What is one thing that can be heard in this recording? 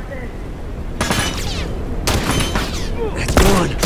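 A rifle fires loud bursts of shots nearby.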